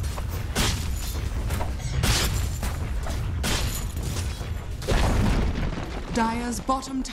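Magic spells crash and whoosh in quick bursts amid the clatter of fighting.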